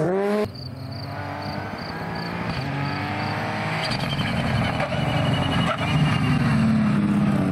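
A rally car engine revs hard as the car approaches, shifting up through the gears.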